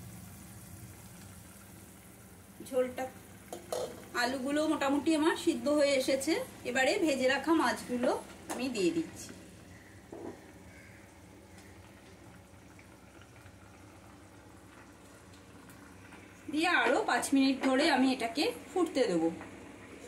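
A pot of curry bubbles and simmers.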